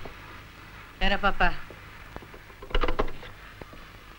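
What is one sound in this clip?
A woman speaks briefly and sharply nearby.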